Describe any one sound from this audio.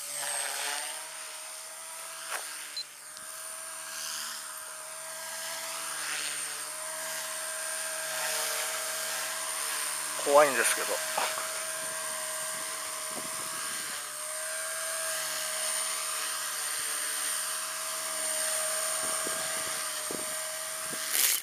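A model helicopter's rotor and motor whine steadily, rising and falling in pitch as it flies close by.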